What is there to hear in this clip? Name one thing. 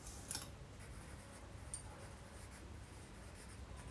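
A pencil scratches on paper.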